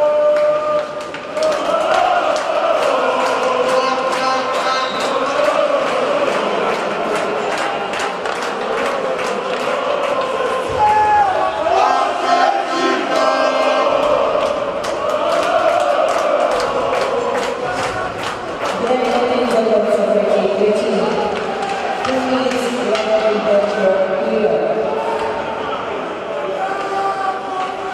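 A crowd of spectators murmurs in a large echoing arena.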